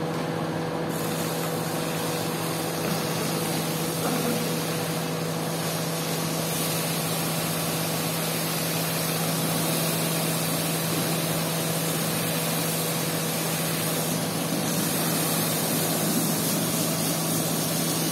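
Water sprays from a hose and splashes onto a wet floor.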